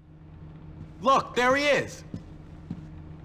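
A young man speaks in a teasing tone, close by.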